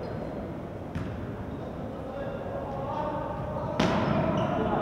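A volleyball is struck hard by a hand.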